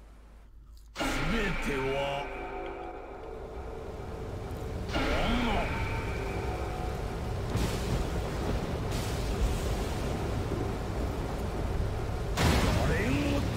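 Dramatic orchestral music plays loudly.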